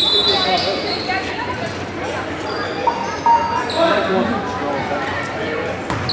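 A crowd of spectators chatters throughout a large echoing gym.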